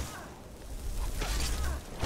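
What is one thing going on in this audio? A magic spell crackles and hums.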